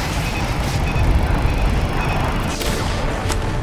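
A rocket roars and an explosion rumbles loudly.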